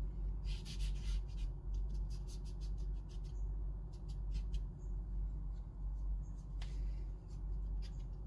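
Charcoal scratches and scrubs across paper in short strokes.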